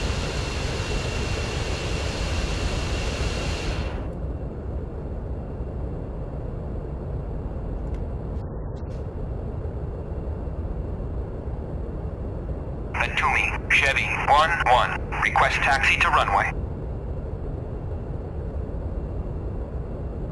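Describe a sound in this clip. A jet engine rumbles steadily at idle.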